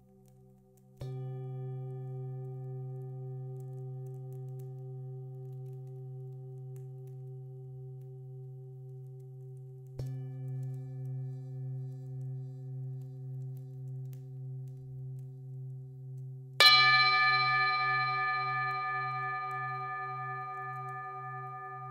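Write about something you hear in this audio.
A mallet strikes a singing bowl, which rings out brightly and slowly fades.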